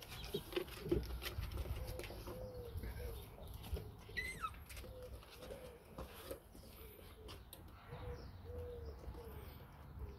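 A puppy whines softly.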